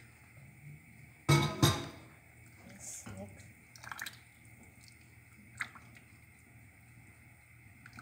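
A spatula scrapes and knocks against a pot while stirring.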